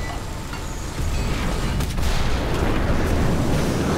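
A vehicle explodes with a heavy blast.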